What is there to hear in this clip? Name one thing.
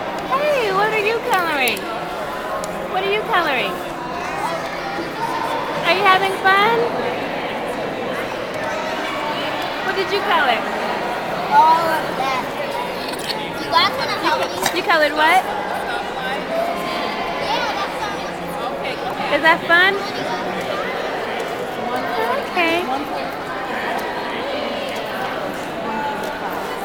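Young children chatter and call out nearby, in a large echoing hall.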